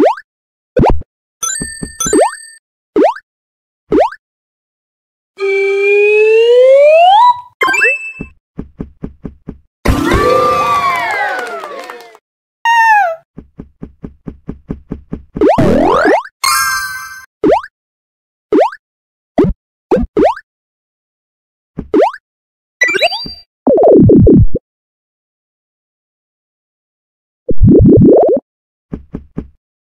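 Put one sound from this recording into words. Game sound effects chime and boing as a character jumps.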